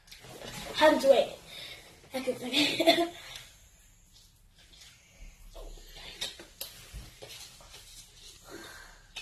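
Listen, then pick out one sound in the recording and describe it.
A young girl talks loudly and excitedly close by.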